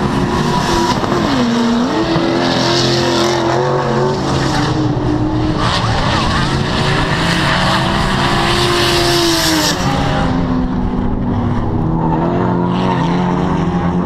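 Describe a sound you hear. Car engines roar and rev loudly.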